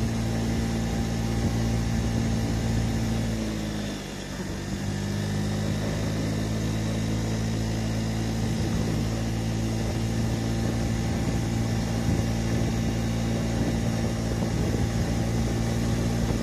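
A scooter engine hums steadily, easing off briefly and then picking up again.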